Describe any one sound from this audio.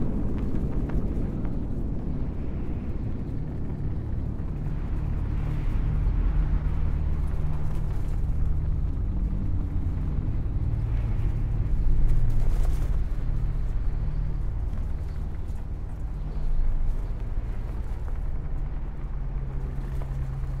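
Huge machines hum with a deep, steady drone.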